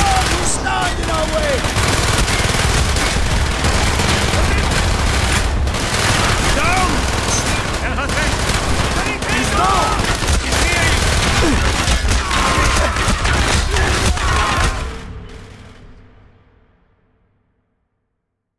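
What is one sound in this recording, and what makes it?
Rapid gunfire rattles loudly and then fades away.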